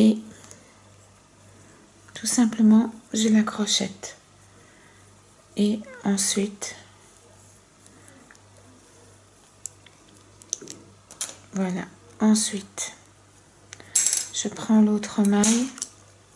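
A hook scrapes softly against yarn on a plastic loom.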